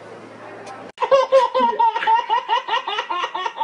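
A baby laughs loudly and gleefully.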